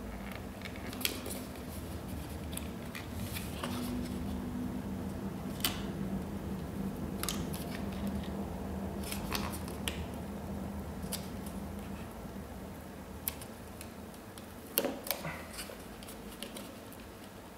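Plastic parts click lightly.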